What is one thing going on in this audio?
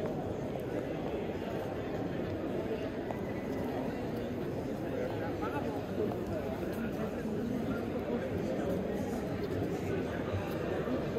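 A crowd of adults murmurs in the open air.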